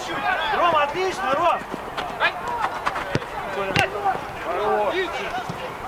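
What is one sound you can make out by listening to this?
A football thuds off a player's foot.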